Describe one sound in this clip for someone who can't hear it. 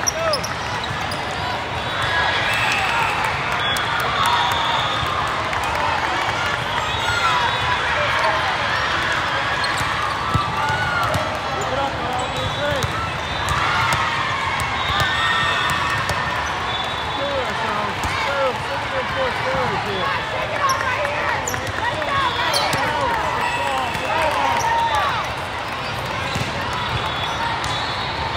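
Many voices chatter and shout throughout a large echoing hall.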